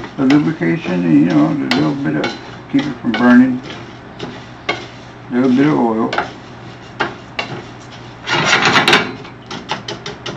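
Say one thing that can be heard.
A wooden spatula scrapes and knocks against a frying pan.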